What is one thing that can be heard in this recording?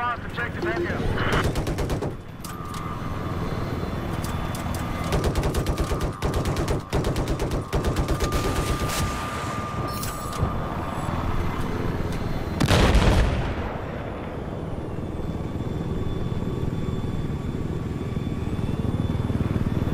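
A helicopter's rotors thrum steadily throughout.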